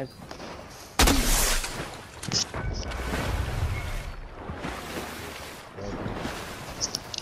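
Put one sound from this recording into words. Water splashes and churns as something plunges in and swims.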